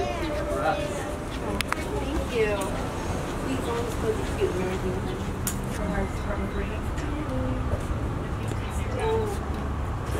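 An elderly woman talks nearby.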